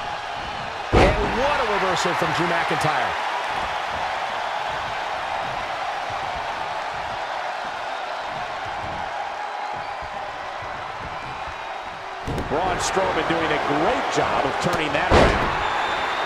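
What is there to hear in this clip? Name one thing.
A wrestler's body slams hard onto the ring mat.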